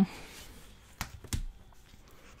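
Paper rustles and crinkles as a sticker sheet is handled.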